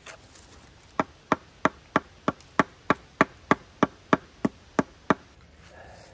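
A hammer knocks on a wooden board in quick, even blows.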